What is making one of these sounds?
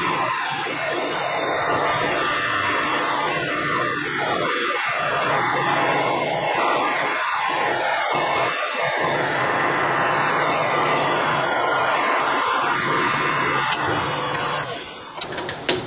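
A metal lathe whirs steadily as it turns.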